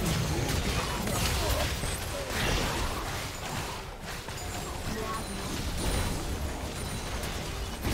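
Video game spell effects whoosh and crackle during a battle.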